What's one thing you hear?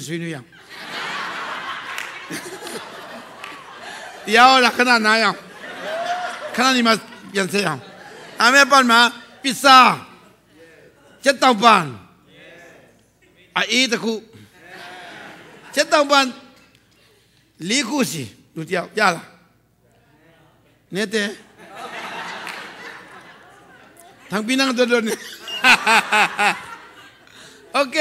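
An audience laughs together.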